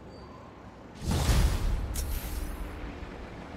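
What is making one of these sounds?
A short chime rings out with a deep swell.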